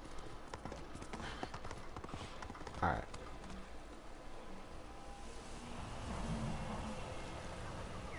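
Hooves clop as a horse trots.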